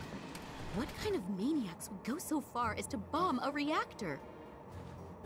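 A young woman asks a question in a worried voice.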